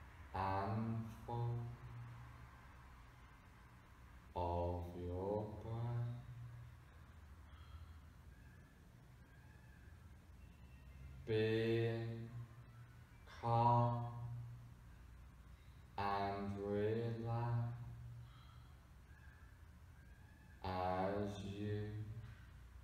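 A man speaks close by, calmly, in slow phrases with long pauses.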